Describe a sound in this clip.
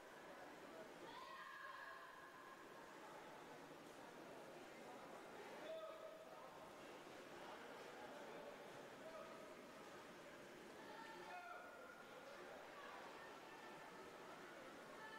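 A crowd of spectators cheers and shouts in a large echoing hall.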